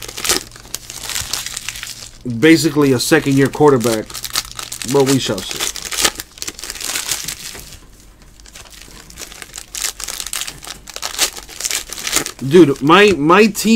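Trading cards and foil wrappers rustle and flick as they are handled close by.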